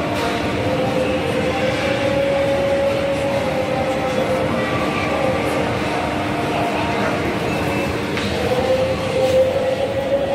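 Many voices murmur and echo in a large indoor hall.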